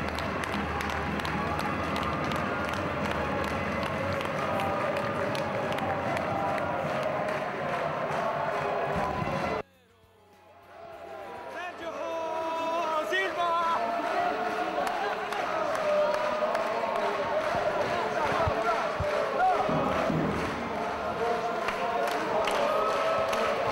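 A large crowd cheers and chants in an echoing hall.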